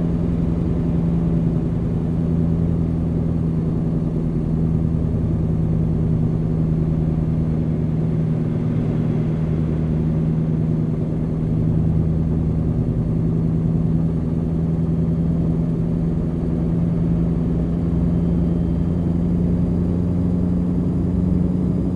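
Tyres roll on a road with a low rumble.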